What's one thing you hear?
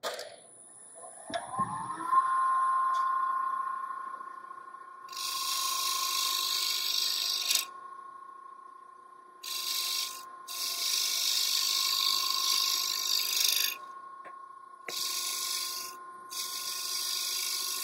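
A lathe motor spins up and hums steadily.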